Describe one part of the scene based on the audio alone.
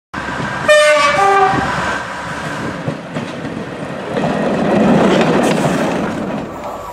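A diesel train engine idles in a large echoing station.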